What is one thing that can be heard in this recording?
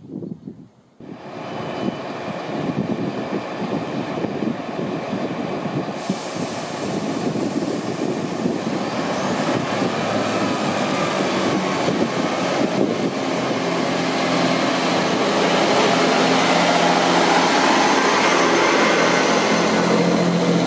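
A diesel train rumbles loudly as it pulls in close by.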